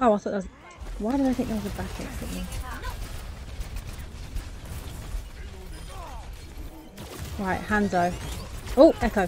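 Rapid blaster shots fire in a video game.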